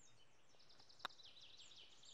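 A putter taps a golf ball once.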